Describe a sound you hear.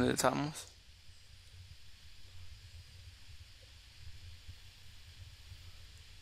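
Footsteps fall softly on grass.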